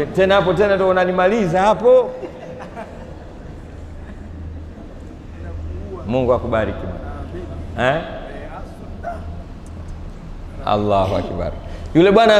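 A man speaks with animation into a close microphone, in a slightly echoing room.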